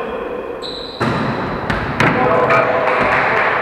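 A volleyball is struck with the hands.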